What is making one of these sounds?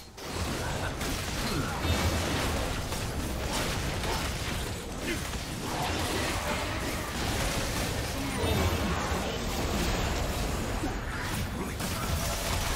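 Magic spells crackle and burst in a busy fantasy battle.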